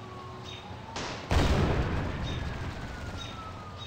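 An explosion booms loudly and rumbles away.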